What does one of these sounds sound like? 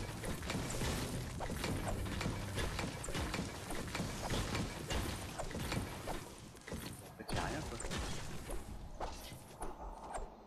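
A pickaxe strikes wood and stone again and again with sharp thuds.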